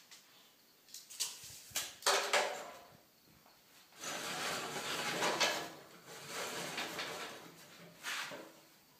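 A metal pipe knocks and clanks as it is handled.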